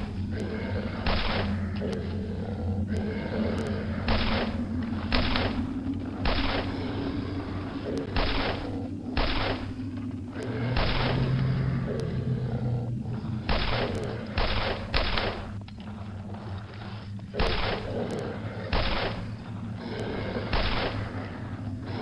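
Pistol shots crack again and again.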